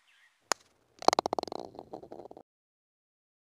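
A golf ball rattles into the cup.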